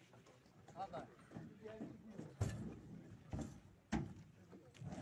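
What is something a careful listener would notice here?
Wooden furniture knocks against a truck bed.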